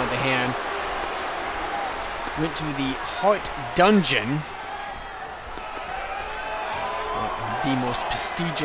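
A crowd roars in a large arena.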